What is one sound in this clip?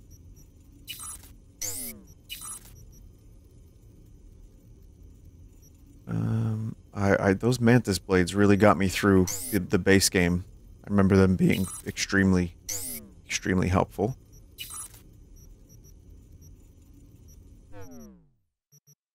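A game menu chimes and whooshes as selections change.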